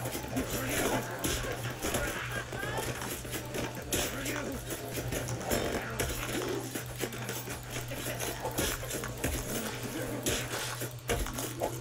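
A blade slashes and strikes repeatedly.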